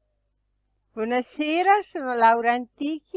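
An elderly woman speaks calmly, close to a microphone.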